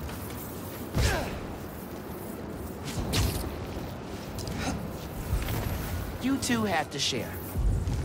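Air rushes past in quick whooshes.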